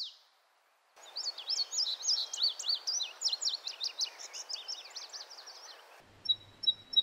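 A small bird sings bright, high paired notes in quick phrases.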